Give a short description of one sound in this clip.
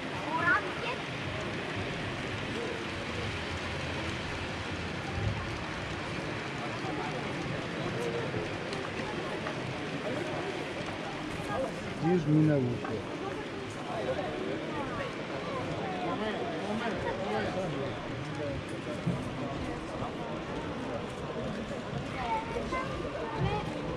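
A model train rattles along its tracks.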